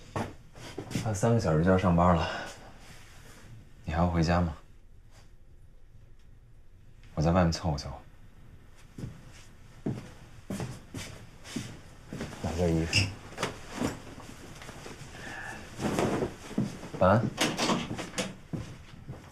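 A young man answers calmly nearby.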